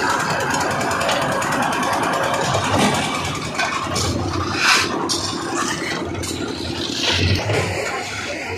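A concrete mixer drum rumbles and churns loudly.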